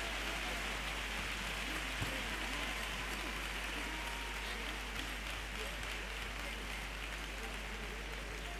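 Guitars strum along with the singing.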